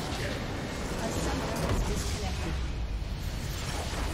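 A large structure explodes in a video game with a deep boom.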